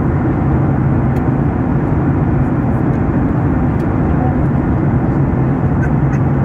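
A jet engine roars steadily, heard from inside an airliner cabin.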